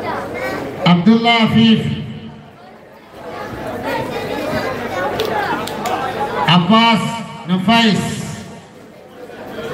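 A man calls out loudly through a loudspeaker in short bursts.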